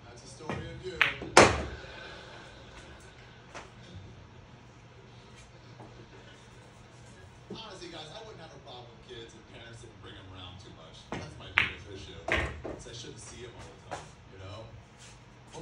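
Pool balls knock together and roll across the table.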